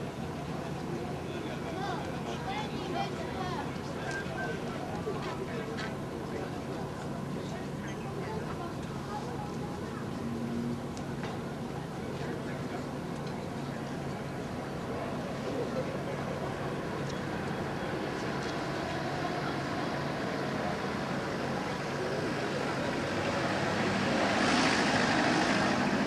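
A crowd of men and women chat nearby outdoors.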